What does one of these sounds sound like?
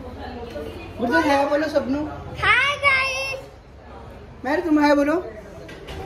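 A young girl talks excitedly and loudly, close by.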